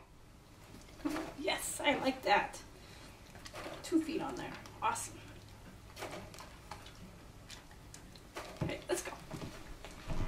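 A woman speaks softly and encouragingly, close by.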